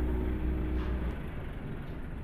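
A truck engine idles with a low rumble.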